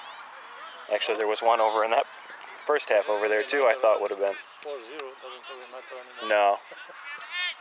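Young players shout loudly across an open field.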